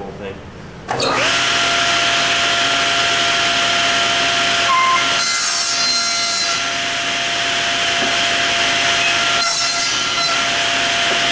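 A table saw starts up and runs with a loud, steady whine.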